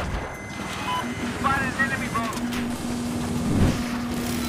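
A helicopter engine drones steadily.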